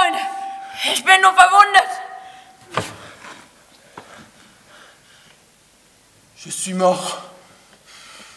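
A man cries out loudly with anguish.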